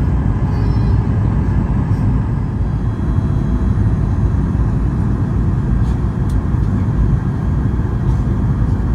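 A jet engine roars steadily inside a plane cabin.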